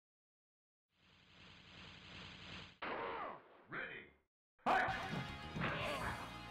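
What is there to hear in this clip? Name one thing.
Fighting sound effects clash and hit.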